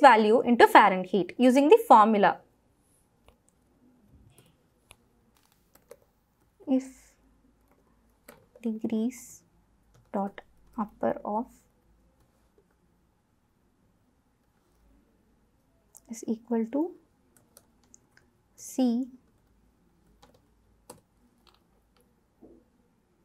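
Laptop keys click softly under typing.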